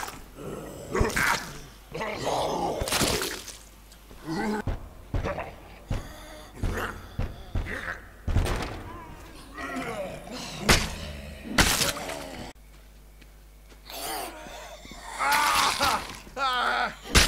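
Zombies snarl and growl.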